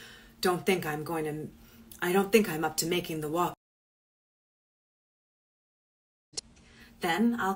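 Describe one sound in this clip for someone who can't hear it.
A woman speaks calmly into a phone microphone, with pauses.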